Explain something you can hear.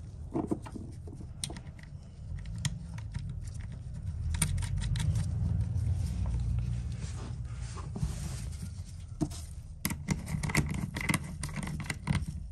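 Gloved hands tighten a nut on a metal terminal with small clicks and scrapes.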